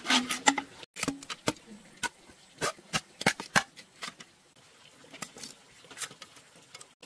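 Knives crack and split bamboo strips with sharp taps.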